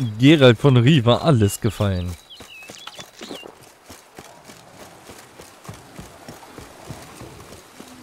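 Footsteps run over dirt and grass.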